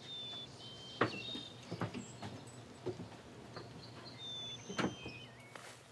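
A wooden door rattles and clicks open.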